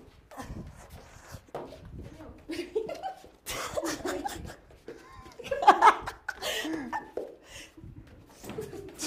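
Shoes thud and squeak on a hard floor.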